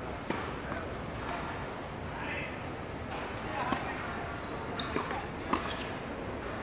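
Tennis rackets strike a ball back and forth in a rally.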